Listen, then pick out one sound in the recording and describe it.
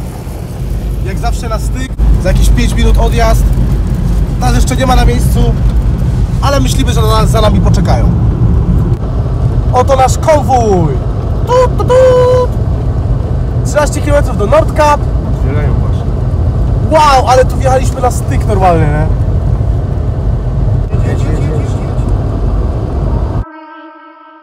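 A car engine drones and tyres rumble on the road.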